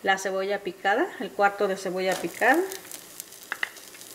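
Chopped onion drops into a hot pan.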